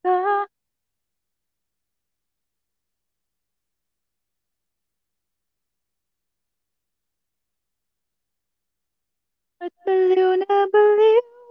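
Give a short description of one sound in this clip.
A young woman sings close into a microphone.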